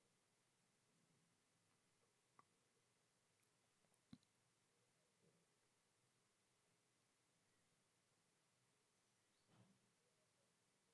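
A man breathes softly close to a microphone.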